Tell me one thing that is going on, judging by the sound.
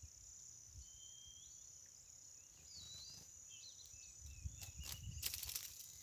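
A small caged bird chirps in short high calls.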